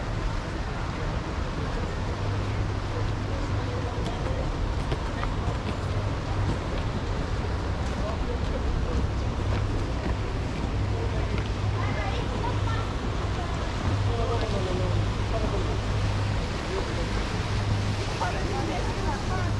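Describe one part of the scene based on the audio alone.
A motorboat engine hums on the water.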